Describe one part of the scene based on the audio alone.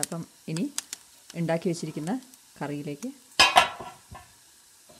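A metal lid clinks against a pot.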